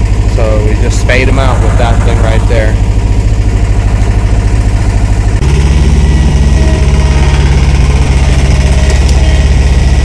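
A diesel engine of a small loader rumbles loudly and steadily close by.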